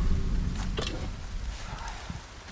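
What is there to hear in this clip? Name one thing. A fire roars and crackles close by.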